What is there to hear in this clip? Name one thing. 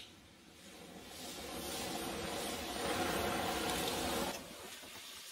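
A gas torch roars with a steady hissing flame.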